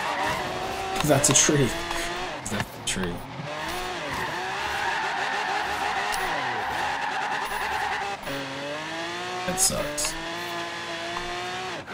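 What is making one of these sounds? A car engine roars and revs, rising and falling in pitch.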